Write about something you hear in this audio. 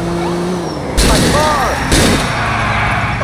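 A car crashes into other cars with a loud metallic bang.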